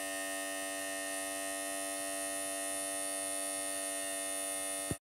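A small electric motor whirs with a steady high whine.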